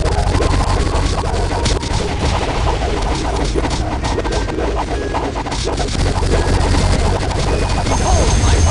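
Video game sound effects pop and crackle rapidly as attacks hit.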